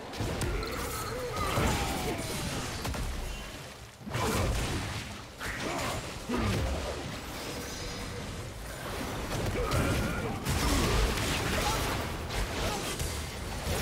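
Spell effects crackle and whoosh during a fight in a video game.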